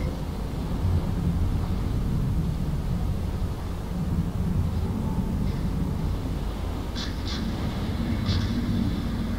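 Fire crackles on a burning ship.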